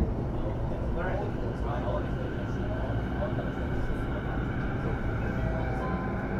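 An electric train's motor whines, rising and falling in pitch.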